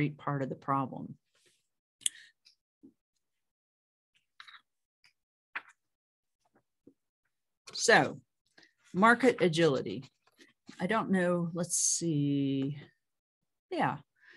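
A middle-aged woman speaks calmly and clearly into a microphone, with pauses.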